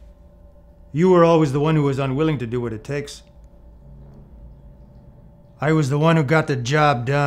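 A man with a deep voice speaks slowly and menacingly nearby.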